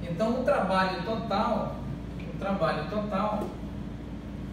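A man speaks calmly, like a teacher explaining.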